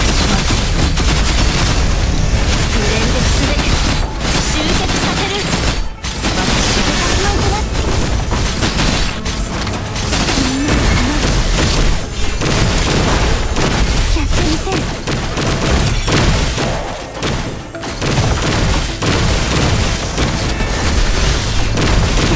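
Swords clash and slash with sharp metallic hits.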